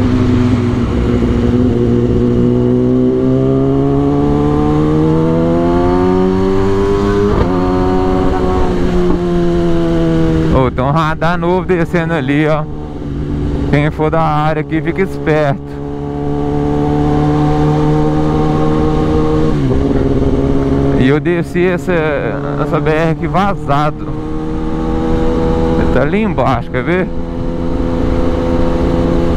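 A motorcycle engine hums close by, its pitch rising and falling as it speeds up and eases off.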